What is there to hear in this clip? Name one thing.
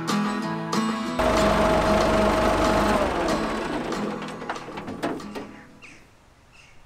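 A tractor engine runs loudly, then shuts off.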